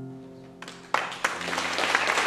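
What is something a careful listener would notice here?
A piano plays a final chord that rings out.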